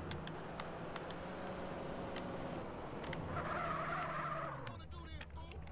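A car engine hums and revs as a car drives over grass.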